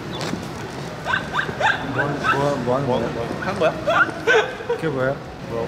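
Young men laugh loudly together.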